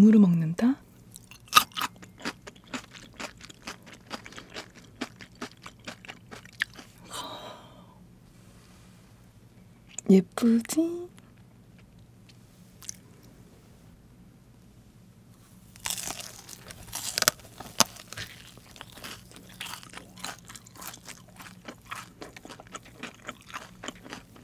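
A young woman chews food with soft, wet, close-up crunching sounds.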